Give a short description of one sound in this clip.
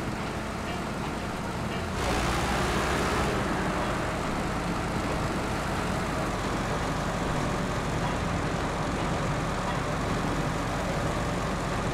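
A heavy truck engine rumbles and labours steadily.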